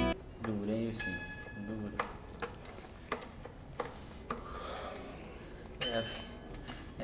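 A single string is plucked briefly while being tuned.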